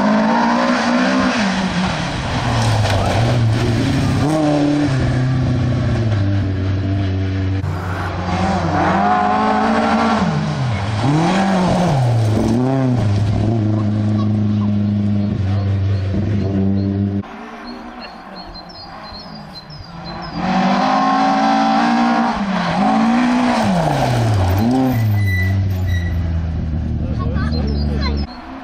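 Rally car engines roar and rev hard as cars race past one after another.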